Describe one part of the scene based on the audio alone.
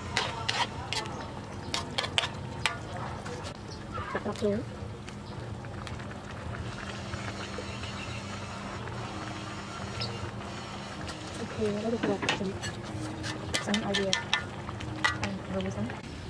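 A spoon scrapes and clinks against a metal pan.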